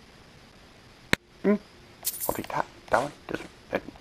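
Coins clink as they are picked up.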